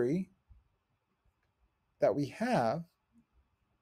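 A man speaks calmly and close to a microphone, in short bursts.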